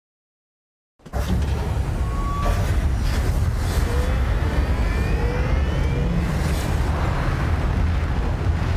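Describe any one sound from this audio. Heavy engines rumble deeply and steadily.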